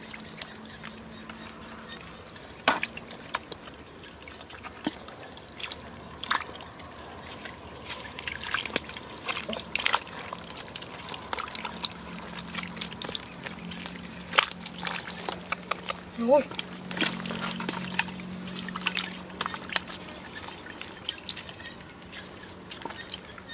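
Hands squelch and splash in wet mud.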